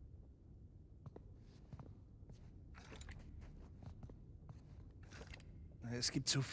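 Stone tiles click and scrape as they slide into place.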